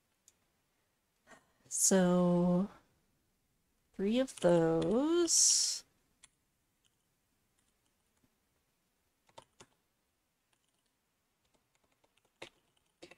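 Keys click on a keyboard now and then.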